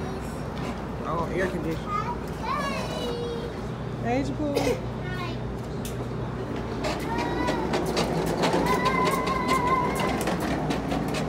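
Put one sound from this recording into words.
A young girl talks and squeals nearby.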